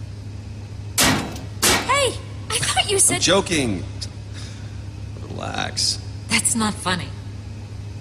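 A young man speaks in a calm, wry voice.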